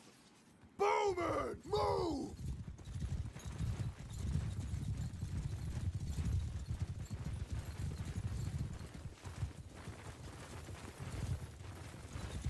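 Horses' hooves thud and rumble on soft ground.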